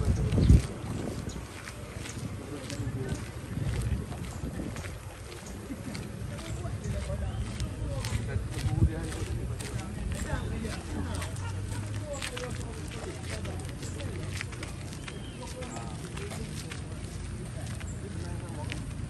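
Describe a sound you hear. Footsteps scuff along a paved path outdoors.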